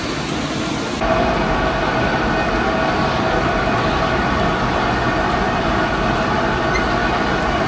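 A metal paddle scrapes against a pan.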